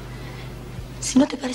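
A second teenage girl answers in a soft voice.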